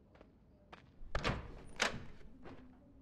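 A door handle clicks and a door swings open.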